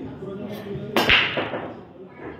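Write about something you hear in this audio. Pool balls crack apart sharply on a break shot.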